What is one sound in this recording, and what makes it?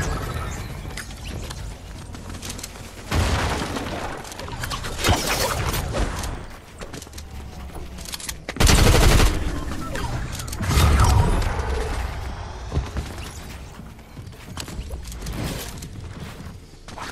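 Game building pieces clatter and thud as they are placed.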